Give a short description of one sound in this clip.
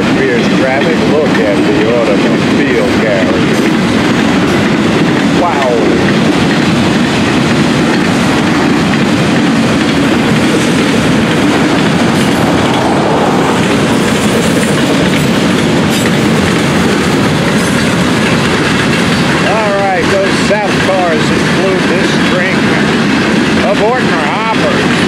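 A freight train rumbles and clatters steadily past close by.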